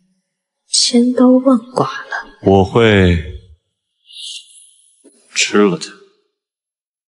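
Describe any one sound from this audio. A young man speaks in a low, calm voice.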